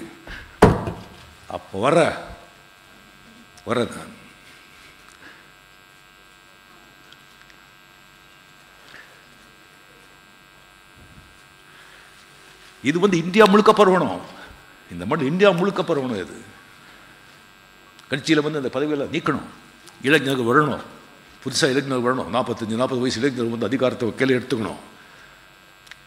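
An elderly man speaks forcefully into a microphone, in bursts with long pauses.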